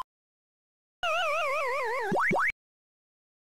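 A game's descending tone falls in pitch.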